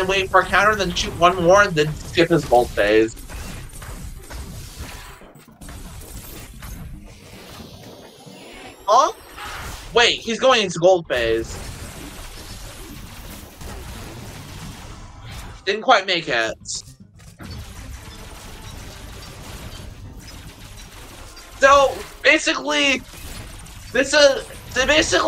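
Video game blasters fire and explosions boom during a fight.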